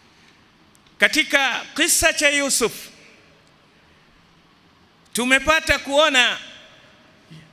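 An elderly man chants loudly into a microphone in short phrases.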